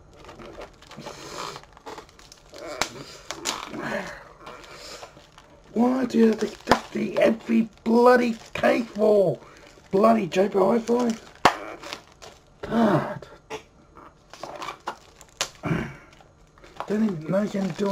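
Plastic packaging crinkles and clicks in a man's hands.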